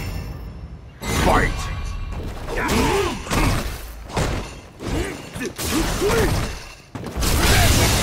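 Video game punches and kicks land with heavy thuds.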